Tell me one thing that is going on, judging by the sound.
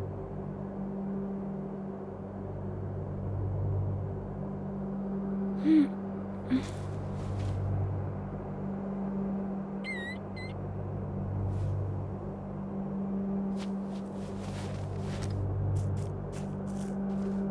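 Wind howls steadily, rising and falling in slow gusts.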